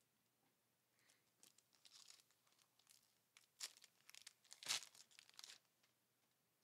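Trading cards rustle and slap together as a stack is shuffled by hand.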